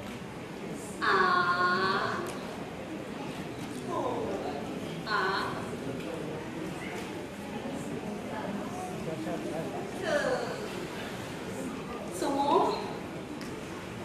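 A woman sings in a high, drawn-out operatic style through a stage microphone.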